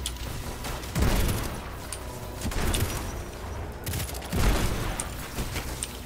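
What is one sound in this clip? Loud blasts boom and rumble.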